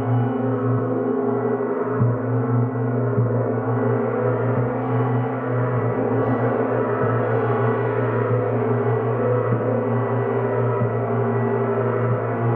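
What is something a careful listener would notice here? A large gong hums and swells in a deep, steady drone.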